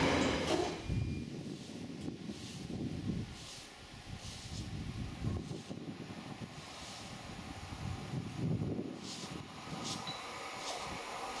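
A diesel locomotive rumbles as it approaches.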